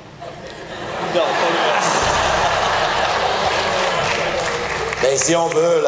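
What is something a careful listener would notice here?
An audience laughs and applauds.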